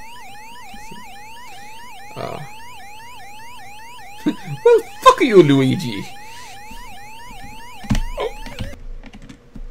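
An arcade game's warbling siren loops rapidly.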